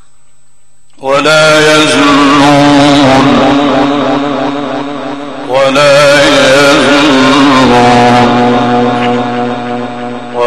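A man chants a long, melodic recitation through a loudspeaker in a large echoing hall.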